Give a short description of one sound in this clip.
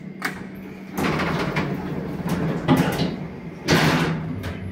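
An elevator car starts moving with a loud rumbling whir.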